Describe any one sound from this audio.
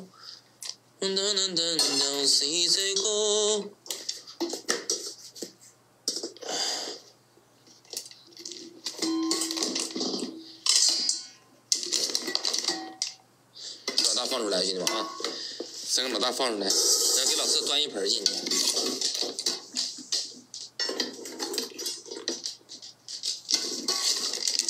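Dry kibble pours and rattles into a metal bowl.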